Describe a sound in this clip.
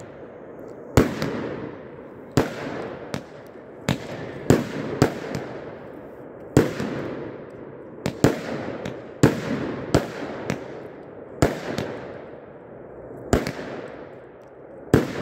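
Fireworks burst with loud booming bangs that echo away.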